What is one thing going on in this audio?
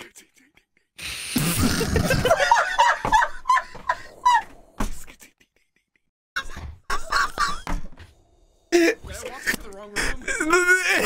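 Another man laughs hysterically into a microphone.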